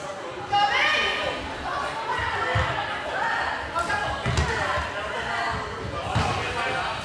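Sneakers squeak on the hall floor.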